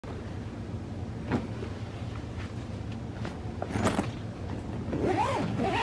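Clothes rustle as a hand rummages through a packed suitcase.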